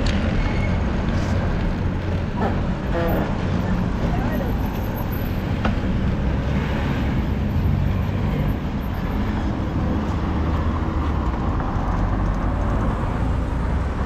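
Cars drive past through a crossing.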